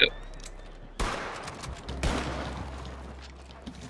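Rifle shots crack and echo.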